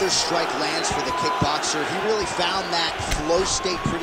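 A kick smacks against a body.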